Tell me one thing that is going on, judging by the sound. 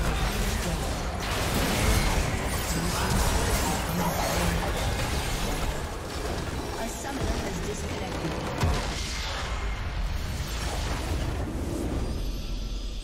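Magic spells crackle and clash in a busy fantasy battle.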